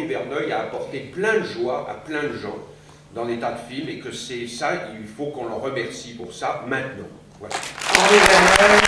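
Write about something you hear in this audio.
An elderly man speaks calmly into a microphone over loudspeakers in a large hall.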